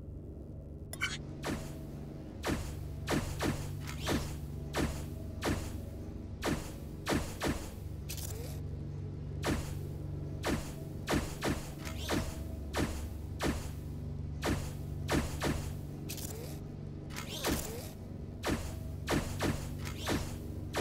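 Blocks clunk into place with repeated sharp clicks.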